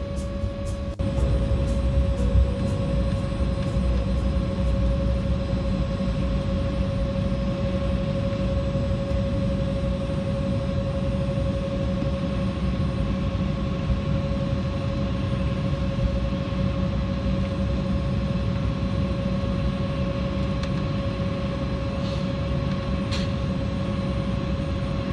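An aircraft rumbles along as it taxis.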